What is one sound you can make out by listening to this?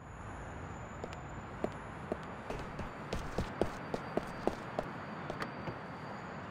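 Footsteps slap quickly on pavement as a man runs.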